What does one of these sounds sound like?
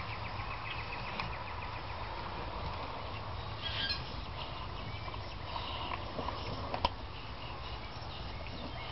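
A dog chews and gnaws on a bone with wet, crunching sounds.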